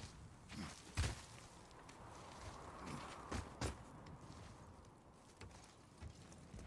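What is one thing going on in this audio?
A climber's hands and boots thump against icy rock.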